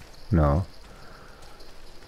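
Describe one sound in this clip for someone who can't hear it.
Footsteps crunch softly on dry grass.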